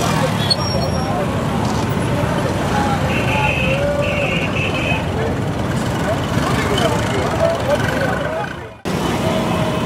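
A crowd of men and women chatter outdoors.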